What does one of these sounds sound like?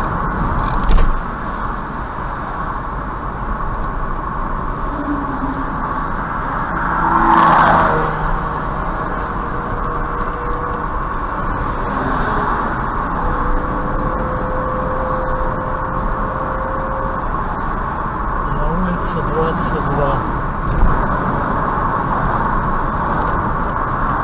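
A car drives along a highway with a steady rumble of tyres and engine.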